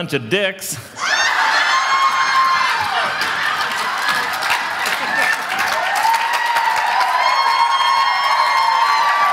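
A crowd of women laughs.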